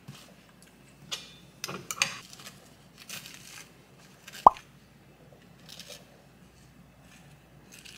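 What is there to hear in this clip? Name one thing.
A knife scrapes spread across crunchy toast.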